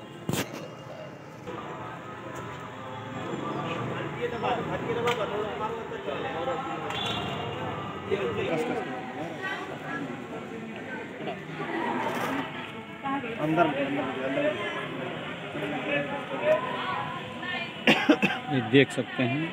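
Several boys talk and call out nearby, outdoors.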